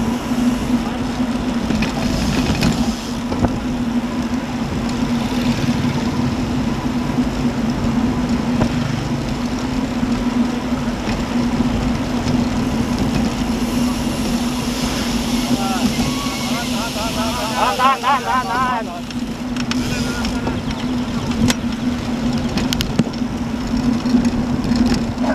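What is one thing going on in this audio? Wind buffets loudly against a moving microphone outdoors.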